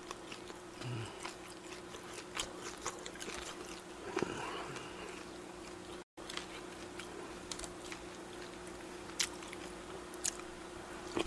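A young man chews food and smacks his lips close to a microphone.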